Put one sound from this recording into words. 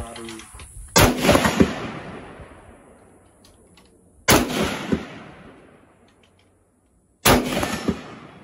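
A rifle fires single loud shots that echo outdoors.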